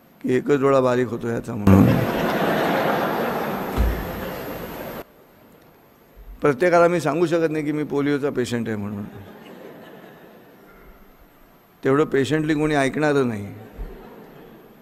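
An elderly man speaks slowly and firmly into a microphone in an echoing hall.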